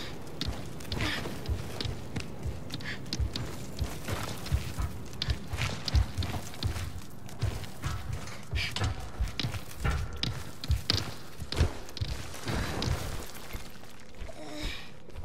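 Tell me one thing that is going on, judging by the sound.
A huge creature's heavy feet thud on stone.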